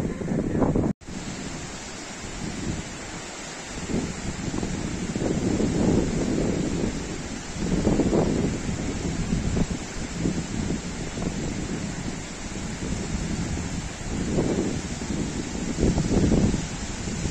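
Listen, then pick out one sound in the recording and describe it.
Floodwater rushes and churns loudly under a bridge.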